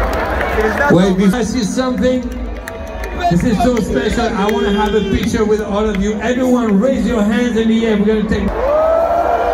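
A man sings along loudly right beside the microphone.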